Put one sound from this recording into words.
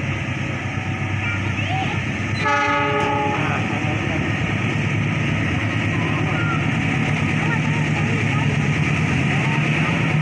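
A train rumbles closer along the tracks, growing louder.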